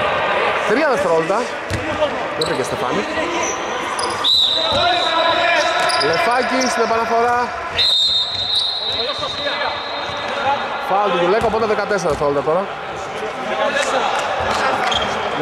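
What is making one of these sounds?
Players' shoes squeak on a hard court.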